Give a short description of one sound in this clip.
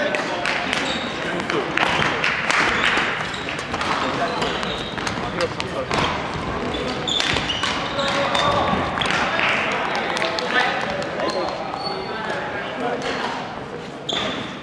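A badminton racket strikes a shuttlecock in a large echoing hall.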